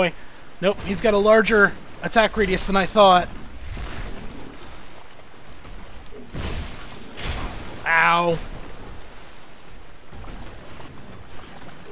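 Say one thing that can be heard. A giant beast's heavy footsteps thud on the ground.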